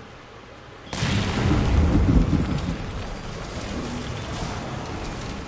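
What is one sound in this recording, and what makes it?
A heavy blast booms and crackles.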